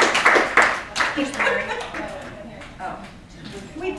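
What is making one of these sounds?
A woman speaks calmly to a small audience.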